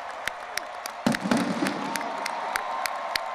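A cannon fires with a loud boom that echoes.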